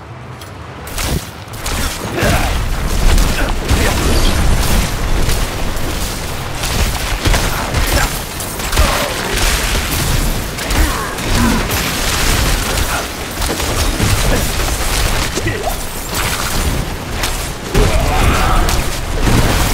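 Heavy impacts thud during fierce fighting.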